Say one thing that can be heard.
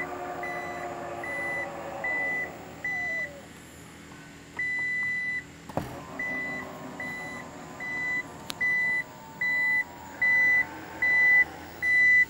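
A car beeps in short, even pulses.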